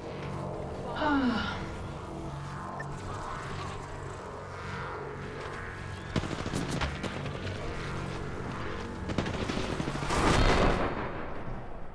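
Electricity crackles and zaps in short bursts.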